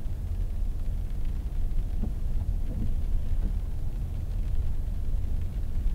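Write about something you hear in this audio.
A windshield wiper swipes across the glass once.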